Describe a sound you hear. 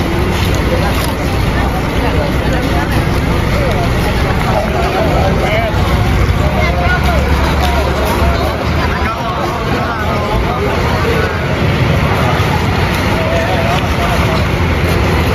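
A crowd of children and young men shout and cheer excitedly outdoors.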